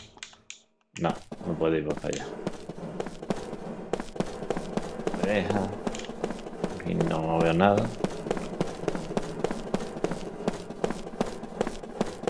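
Quick footsteps run across a stone floor.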